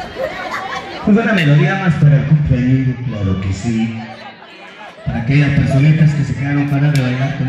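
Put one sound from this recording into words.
A woman sings into a microphone through a loudspeaker.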